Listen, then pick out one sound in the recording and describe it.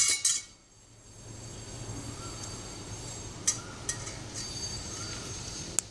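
Fingers crumble and rub a dry crumbly mix against a metal bowl.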